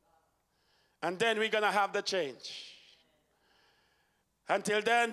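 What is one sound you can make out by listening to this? A man sings loudly through a microphone in a reverberant hall.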